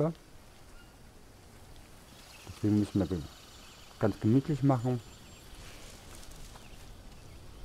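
Leaves rustle softly as a hand pushes through dense foliage.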